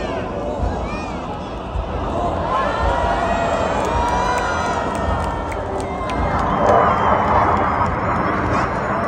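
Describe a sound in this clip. Jet planes roar loudly overhead.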